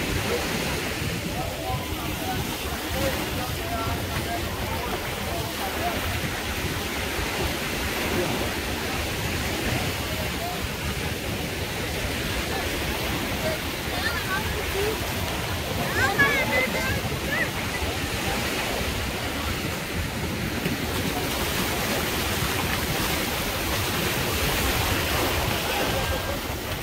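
A crowd of beachgoers chatters all around outdoors.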